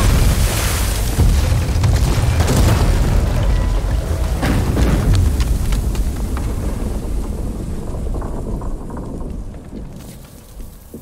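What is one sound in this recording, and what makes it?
A blizzard wind roars loudly and then dies down.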